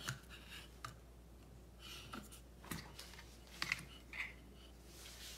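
Cardboard scrapes and knocks as a box is handled.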